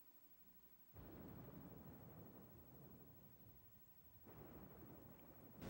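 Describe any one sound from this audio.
Rain and wind rush steadily.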